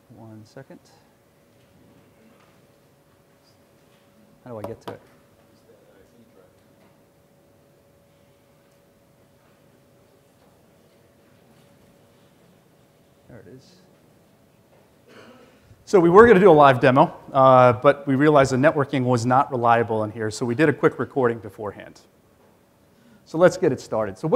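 A man speaks through a microphone in a large room, with long pauses.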